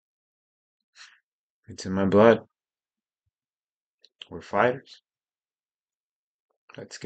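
A young man speaks calmly in short phrases, close to the microphone.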